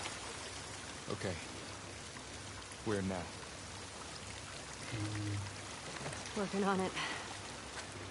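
A young woman speaks quietly in short phrases.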